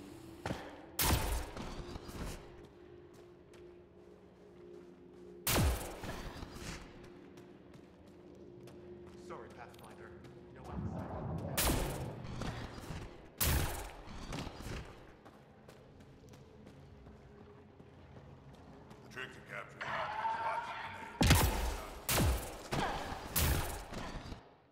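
Heavy thuds sound as a figure jumps and lands on rocky ground.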